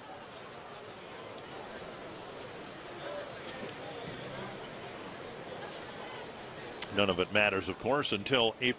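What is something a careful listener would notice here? A seated crowd murmurs and chatters.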